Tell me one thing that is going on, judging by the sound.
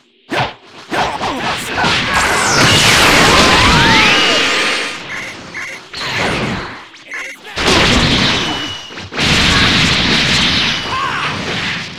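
Energy blasts whoosh and explode in a fight.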